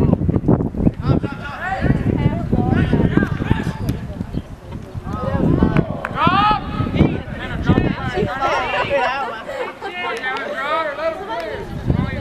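Young men shout to each other across a playing field.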